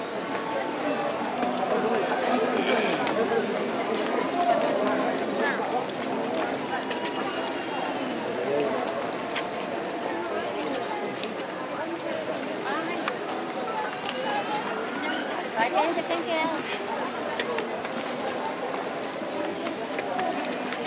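A large crowd of men and women chatters outdoors all around.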